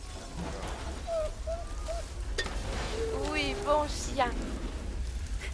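A dog whines and whimpers in high, wavering tones.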